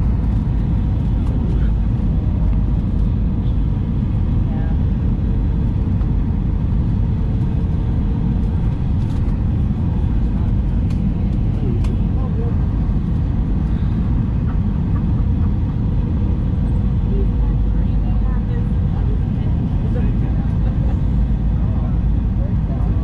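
Jet engines roar steadily in a deep, constant rumble.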